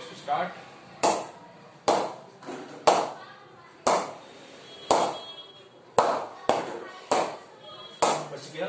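A cricket ball knocks against a wooden bat again and again in sharp, even taps.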